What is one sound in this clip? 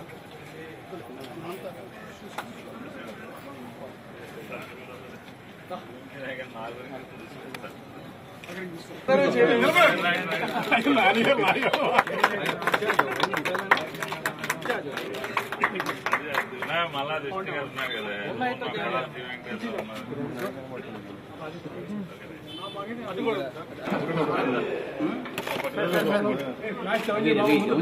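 A crowd of men chatters close by.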